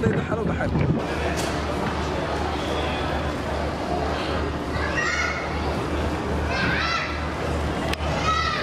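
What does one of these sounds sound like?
A crowd murmurs and chatters indoors.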